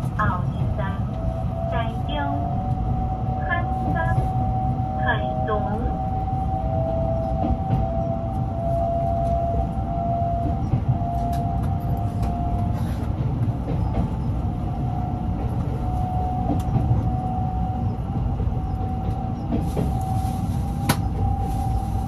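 An electric train motor hums with a steady whine.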